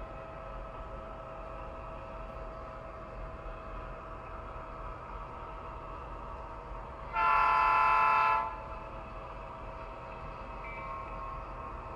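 A model locomotive's motor hums steadily as it rolls along the track.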